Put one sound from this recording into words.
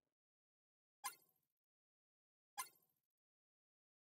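Short menu clicks sound twice.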